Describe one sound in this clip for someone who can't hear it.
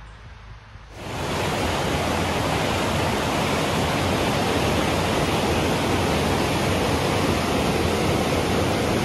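A river rushes loudly over rocks.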